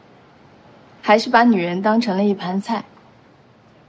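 A young woman speaks mockingly, close by.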